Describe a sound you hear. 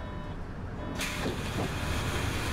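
Pneumatic bus doors open with a hiss of air.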